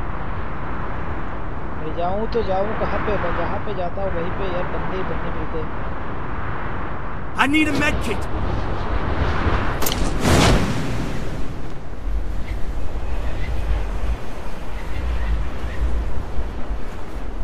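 Wind rushes steadily past a falling game character.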